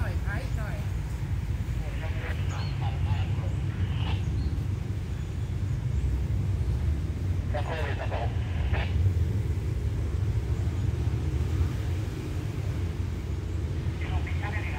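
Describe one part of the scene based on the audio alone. A diesel locomotive engine idles steadily in the distance.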